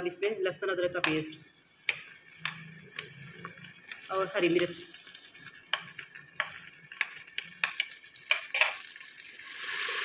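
A spoon scrapes and taps against a plate.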